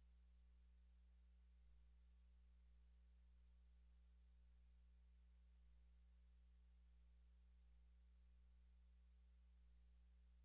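A low electrical hum drones steadily.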